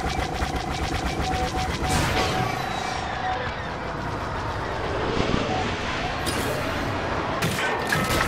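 A spaceship engine roars steadily.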